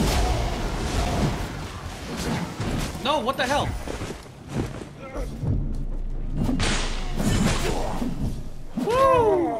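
Heavy blades swing and strike in a fight.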